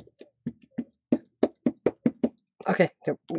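An ink pad dabs softly and repeatedly against a stamp block.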